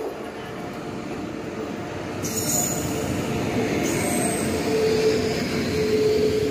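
A train rumbles along on the rails close by.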